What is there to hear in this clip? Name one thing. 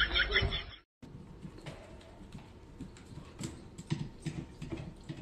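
A dog's claws click on a hard wooden floor.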